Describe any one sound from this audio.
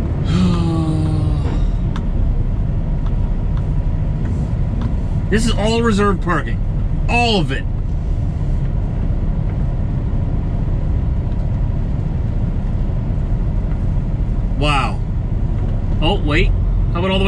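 A truck engine rumbles low and steady while rolling slowly.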